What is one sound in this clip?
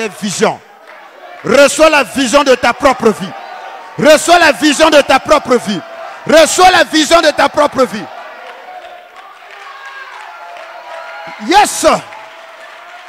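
A man shouts with passion through a microphone in an echoing hall.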